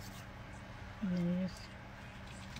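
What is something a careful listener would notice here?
A woman murmurs briefly close by.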